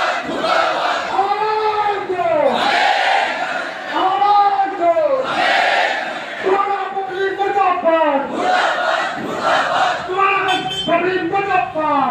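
A large crowd of men chants slogans loudly outdoors, in repeated rhythmic calls.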